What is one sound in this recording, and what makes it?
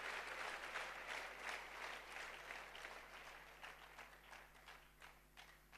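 An audience claps loudly, then the applause slowly fades.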